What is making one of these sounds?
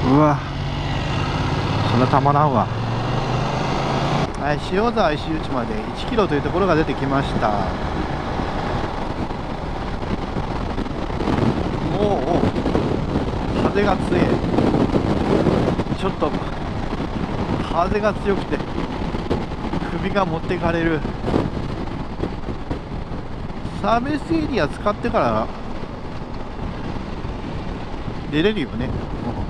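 A motorcycle engine drones steadily at speed.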